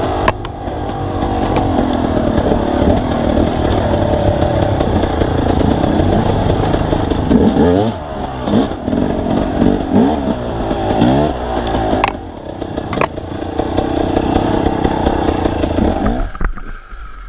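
A two-stroke enduro motorcycle revs up and down.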